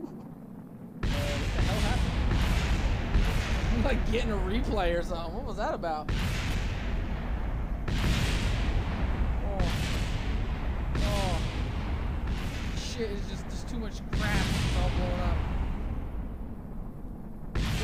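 Explosions boom and crackle with a deep rumble.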